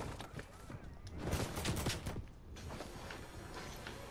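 Ice shatters with a crackling burst.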